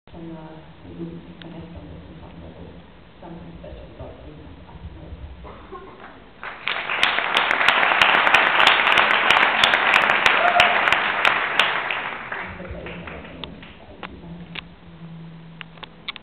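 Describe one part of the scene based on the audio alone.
A young woman speaks calmly through a microphone in a large echoing hall.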